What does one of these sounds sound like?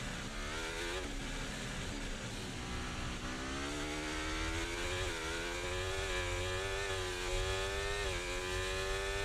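A racing car engine screams at high revs, rising in pitch and dipping briefly at each gear change.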